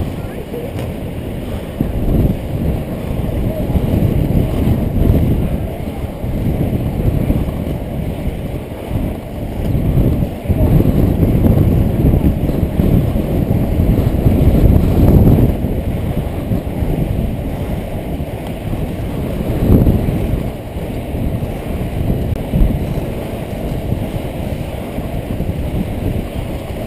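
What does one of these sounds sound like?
Inline skate wheels roll and rumble on asphalt.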